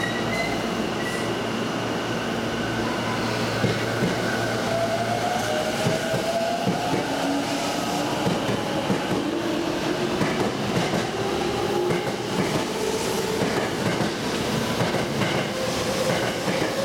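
A train pulls away, its motor whining upward and wheels clattering faster over the rails.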